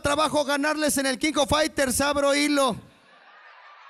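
A young man speaks with animation into a microphone over loudspeakers.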